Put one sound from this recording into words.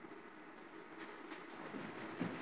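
Footsteps tap faintly on a wooden stage.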